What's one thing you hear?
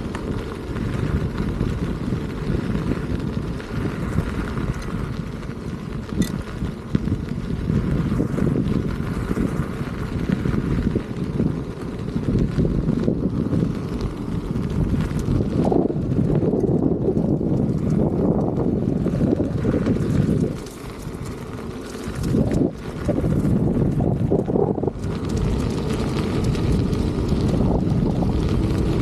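A small electric motor whines as a unicycle rolls along.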